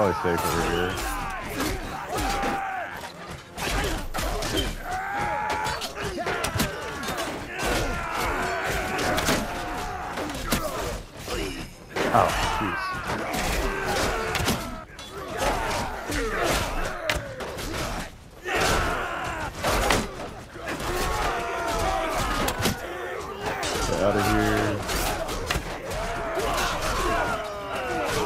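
Swords and shields clash repeatedly in a battle.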